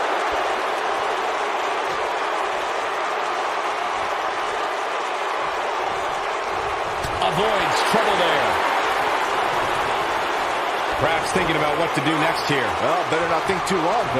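A large crowd roars steadily in a big arena.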